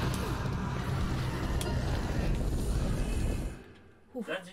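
Fire roars and crackles loudly.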